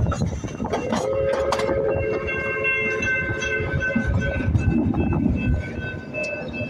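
A train horn sounds a long, steady blast.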